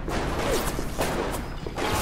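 An electric bolt crackles and zaps.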